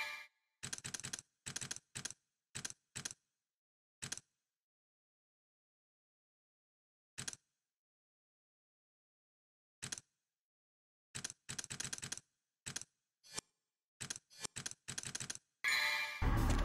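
Short menu blips click as options are selected.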